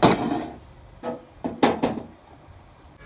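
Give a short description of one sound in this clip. A glass pot lid clinks as a hand lifts it.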